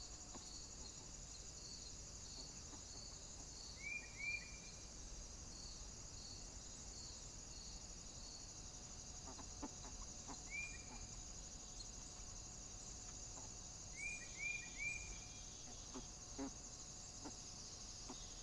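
A wild boar snuffles and rustles through dry leaves.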